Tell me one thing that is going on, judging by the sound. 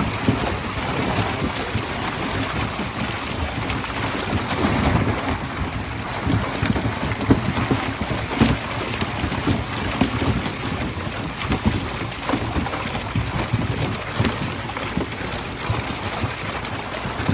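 A net rustles as men haul it.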